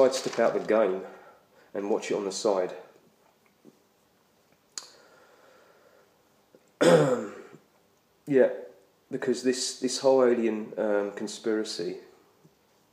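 A young man talks calmly close to a microphone, pausing between phrases.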